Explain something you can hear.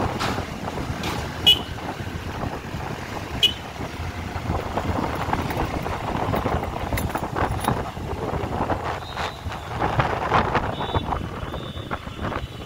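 Motorbike engines hum close by.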